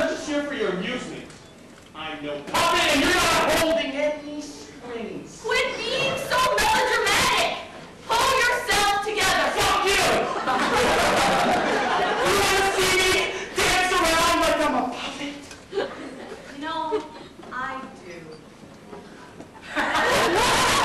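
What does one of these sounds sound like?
A young man shouts with animation in a large hall.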